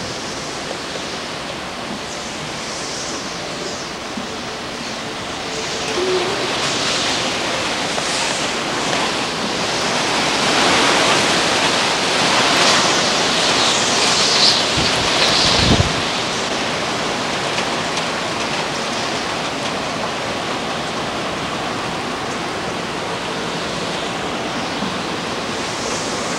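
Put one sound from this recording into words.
Strong wind blows and gusts outdoors.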